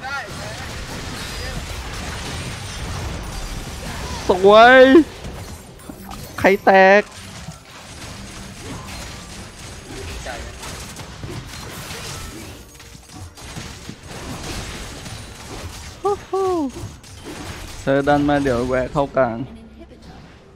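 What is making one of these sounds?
Video game battle effects crackle, zap and whoosh.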